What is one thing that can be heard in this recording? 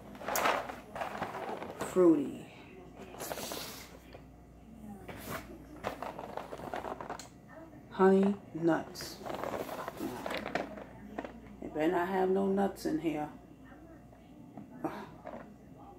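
A cardboard box rustles in a woman's hands.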